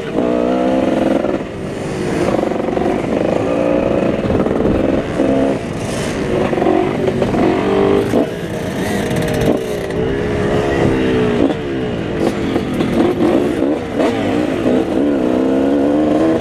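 A motorcycle engine roars loudly up close, revving up and down as the rider shifts.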